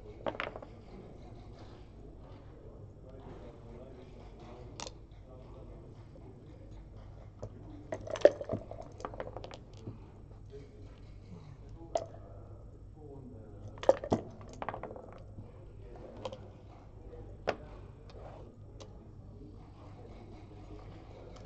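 Game pieces click and clack against a wooden board.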